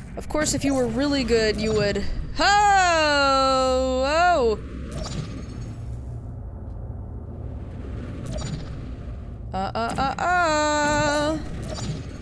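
A game's portal gun fires with sharp electronic zaps.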